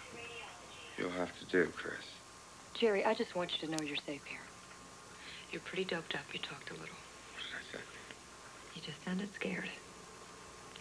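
A young woman speaks softly and earnestly.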